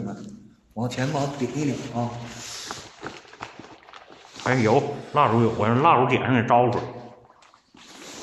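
A man speaks close by in a low, hushed voice.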